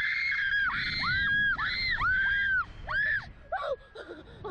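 Two young women scream loudly close by.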